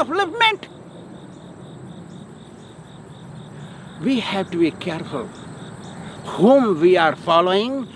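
A man speaks loudly and expressively outdoors, close by.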